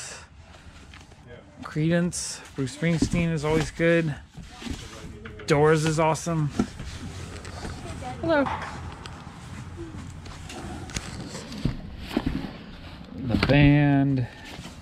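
Cardboard record sleeves slide and flap against each other as they are flipped through.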